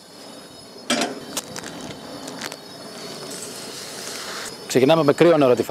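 Dry lentils rattle into a metal pot.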